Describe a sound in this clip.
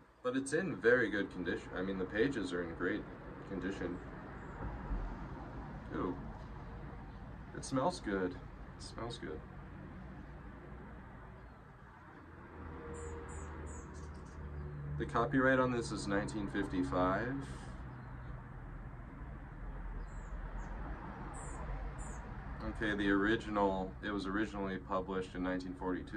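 A man speaks calmly close by, reading aloud.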